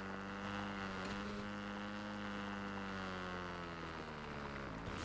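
A motorbike engine drones steadily.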